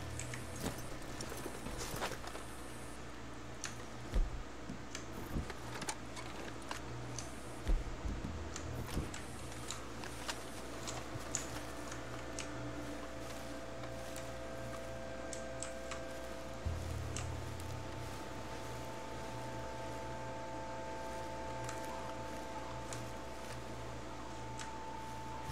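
Footsteps crunch through leaves and undergrowth.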